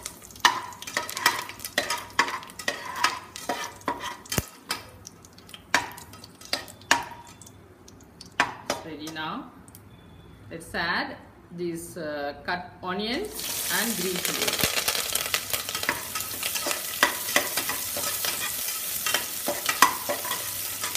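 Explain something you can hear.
A slotted metal spoon clinks and scrapes against an aluminium pot.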